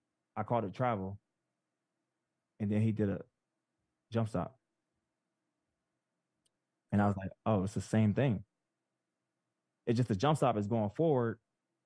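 A man speaks with animation into a microphone, heard through an online call, in short bursts with pauses.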